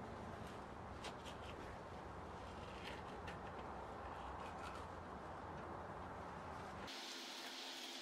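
A wrench clicks and rattles as it turns a nut on a metal rod.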